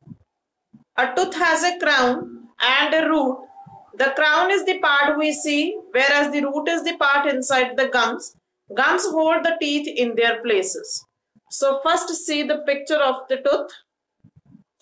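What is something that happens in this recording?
A woman speaks calmly and steadily, close to a microphone.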